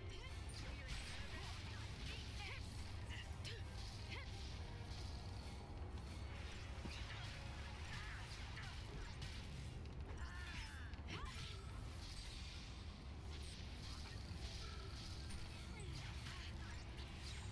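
Explosions and magic blasts crack and boom in quick succession.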